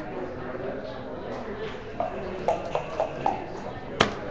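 Game pieces click onto a wooden board.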